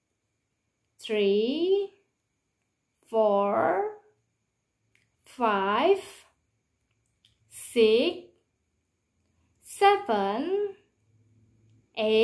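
A woman speaks close to a microphone, in short, clear, lively phrases with pauses between them.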